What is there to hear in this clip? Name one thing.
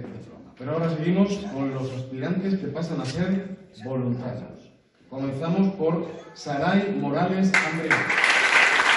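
A man speaks into a microphone over loudspeakers, echoing in a large hall.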